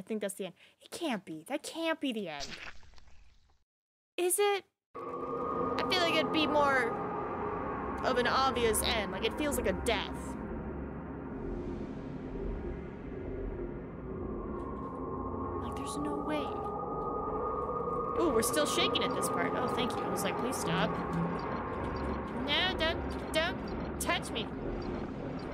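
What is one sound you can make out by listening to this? A young woman talks into a close microphone with animation.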